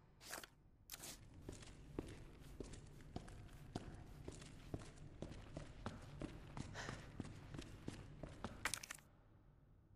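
Footsteps walk quickly across a hard floor.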